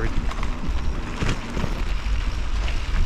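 Bicycle tyres crunch over a gravel path.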